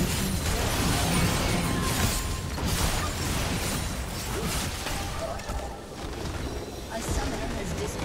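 Magic blasts and hits crackle and clash in a busy game fight.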